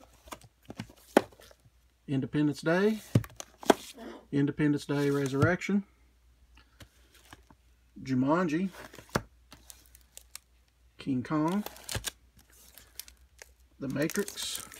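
Plastic cases clack and rattle as they are slid along a shelf.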